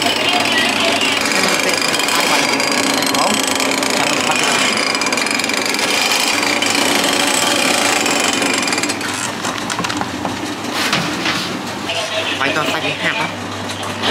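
A machine hums and whirs steadily with rolling drums.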